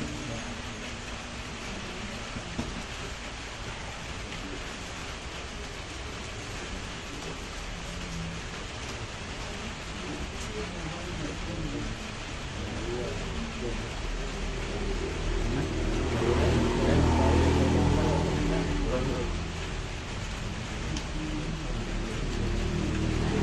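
Men and women talk quietly nearby.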